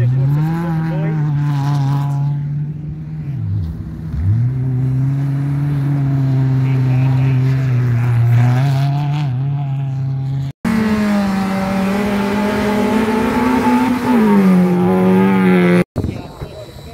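A rally car engine roars loudly as it revs and speeds past.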